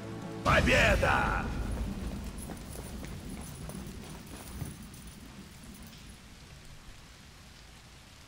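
Heavy rain pours steadily outdoors and slowly fades.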